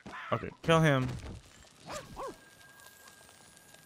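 Blows land with dull thuds.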